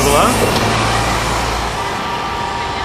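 A bus engine rumbles as a bus pulls away.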